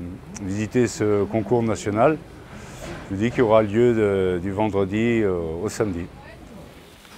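A middle-aged man speaks with animation close to a microphone outdoors.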